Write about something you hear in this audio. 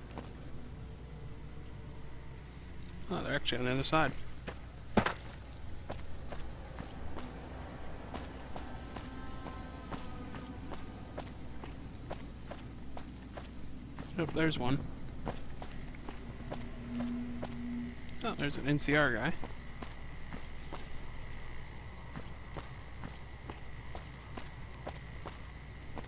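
Footsteps crunch steadily on hard ground.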